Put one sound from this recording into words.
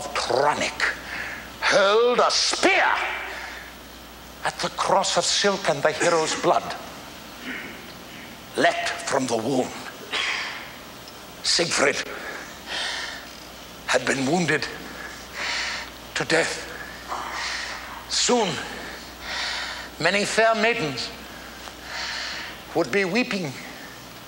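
An elderly man speaks dramatically with pauses, his voice ringing in a large echoing hall.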